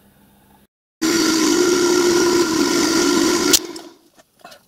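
A milling machine grinds loudly into metal.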